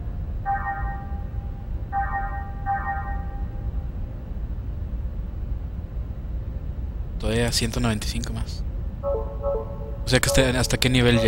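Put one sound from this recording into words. Short electronic menu tones beep in quick bursts.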